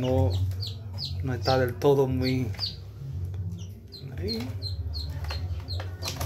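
A small bird chirps repeatedly in short, high calls.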